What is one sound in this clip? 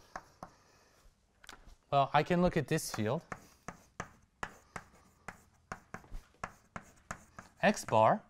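Chalk taps and scrapes on a board.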